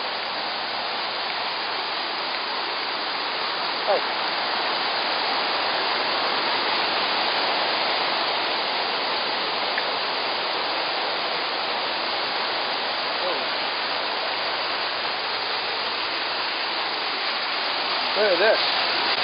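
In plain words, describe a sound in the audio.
Rushing water roars steadily over rocks.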